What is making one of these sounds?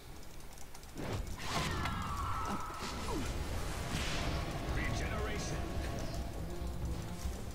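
Clashing fight effects and spell blasts ring out in a video game.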